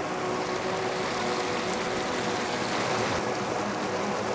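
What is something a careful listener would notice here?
Water rushes and splashes over rocks nearby.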